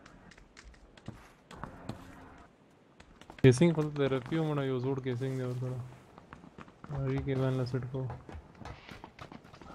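Footsteps patter on hard ground.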